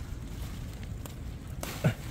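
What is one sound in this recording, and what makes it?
Leaves rustle as a hand pulls a melon from the vine.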